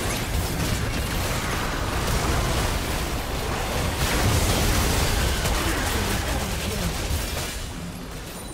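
Spell blasts and weapon hits crackle and boom in a busy fight.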